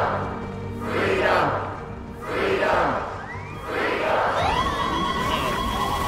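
A crowd chants loudly in unison.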